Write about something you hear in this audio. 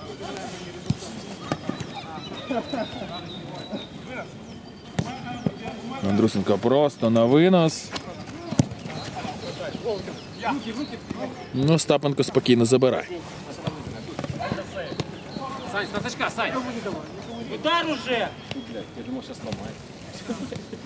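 Men shout and call out to each other during a football match outdoors.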